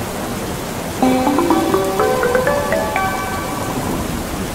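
A short rising chime plays.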